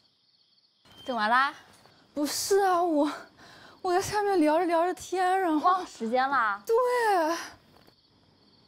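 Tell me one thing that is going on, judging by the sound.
A young woman speaks casually nearby.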